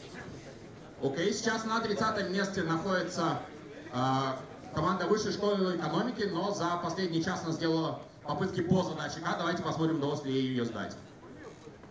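A man speaks with animation through a microphone and loudspeakers in a large hall.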